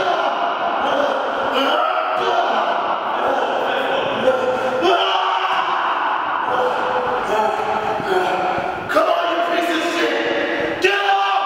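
Several young men talk and laugh close by.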